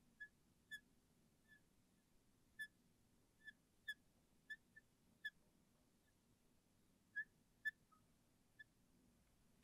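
A marker squeaks in short bursts on a glass board.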